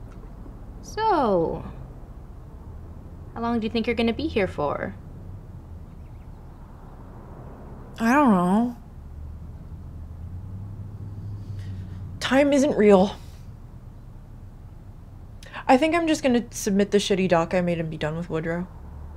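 A young woman speaks calmly nearby, in short bursts.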